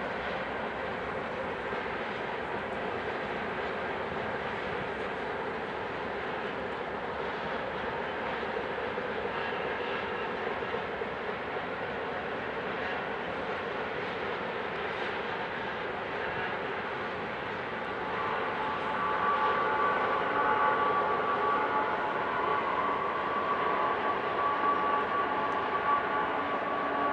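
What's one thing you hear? A long freight train rumbles steadily along the tracks in the distance.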